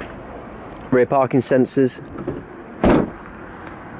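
A car's rear door swings shut with a solid thud.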